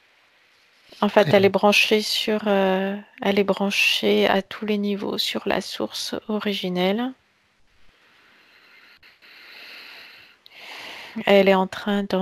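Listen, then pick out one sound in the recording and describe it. A man speaks calmly over an online call, close to a headset microphone.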